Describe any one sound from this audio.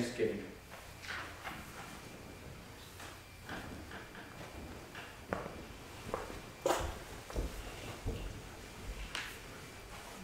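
Metal vessels clink and knock softly on a wooden surface.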